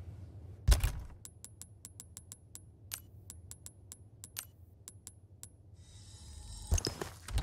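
Menu clicks tick quickly one after another.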